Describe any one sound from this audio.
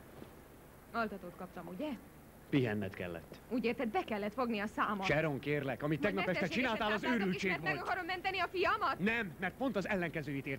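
A woman speaks urgently nearby.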